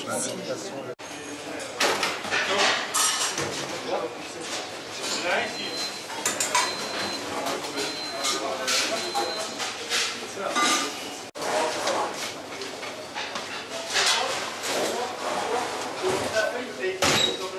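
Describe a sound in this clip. Dishes and utensils clatter.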